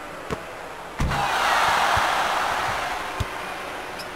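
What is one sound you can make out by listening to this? A crowd cheers loudly and then dies down.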